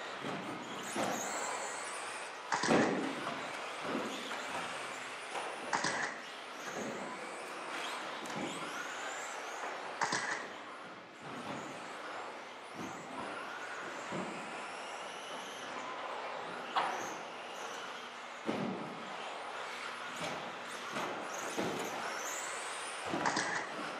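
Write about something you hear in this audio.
Small electric motors whine as radio-controlled cars race, rising and falling in pitch.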